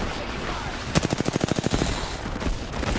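A rapid-fire gun shoots a fast burst of shots.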